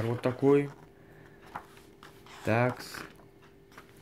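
A page of a book is turned with a soft paper rustle.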